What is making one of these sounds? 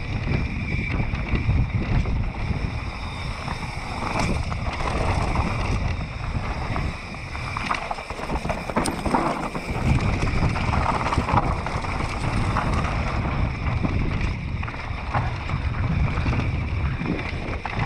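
Wind rushes loudly past a bike rider.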